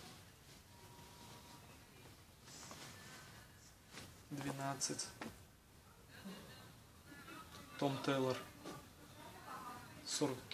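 Cloth rustles and swishes as garments are handled and laid down.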